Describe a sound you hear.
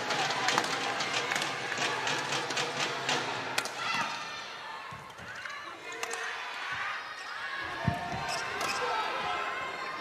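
Badminton rackets strike a shuttlecock in a rally.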